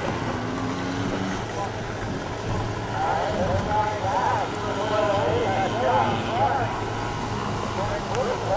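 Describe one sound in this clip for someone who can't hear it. Small dirt bike engines buzz and rev up and down nearby.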